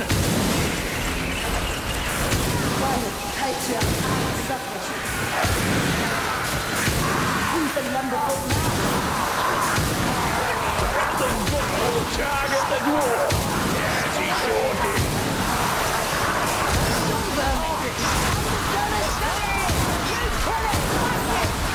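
Monsters snarl and screech.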